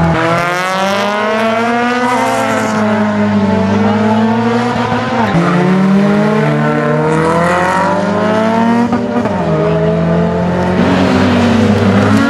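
A racing car engine revs hard, its pitch climbing and dropping sharply with each gear change.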